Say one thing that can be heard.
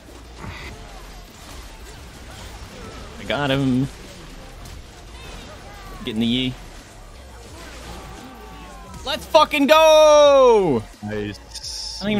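Fantasy battle sound effects whoosh and zap as spells are cast.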